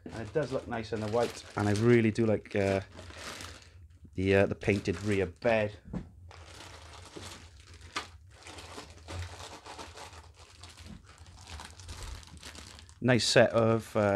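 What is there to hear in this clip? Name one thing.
Plastic bags crinkle and rustle as they are handled.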